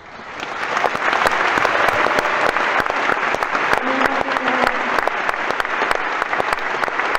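A large crowd applauds in a big echoing hall.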